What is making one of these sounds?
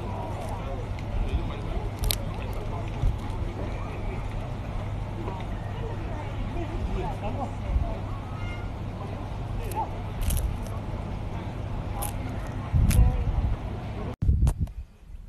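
A cockatoo nibbles and crunches food.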